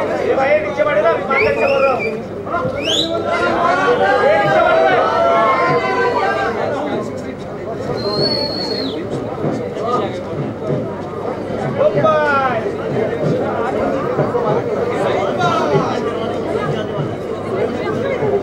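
A crowd of men and women chatters and calls out loudly close by.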